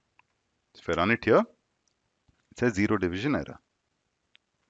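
A young man speaks calmly and close into a headset microphone.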